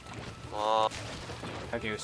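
Paint splatters with a wet, bursting splash.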